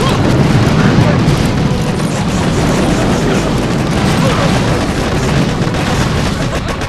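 Gunfire crackles steadily.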